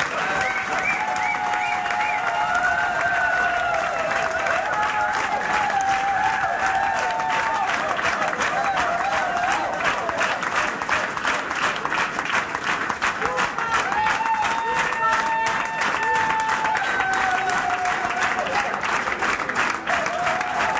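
A fiddle plays a lively folk tune.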